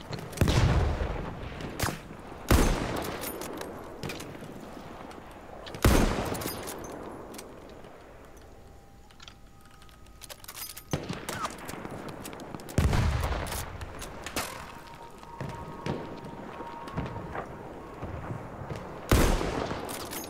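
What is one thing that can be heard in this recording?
A rifle fires loud shots that echo away.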